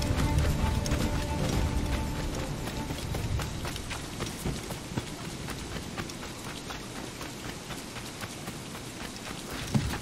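Footsteps thud quickly on the ground as a man runs.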